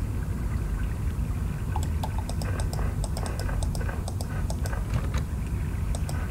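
Snow blocks are placed with soft, muffled thuds.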